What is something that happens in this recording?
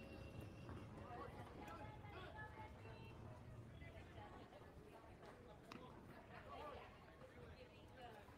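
Children call out and chatter across an open outdoor field.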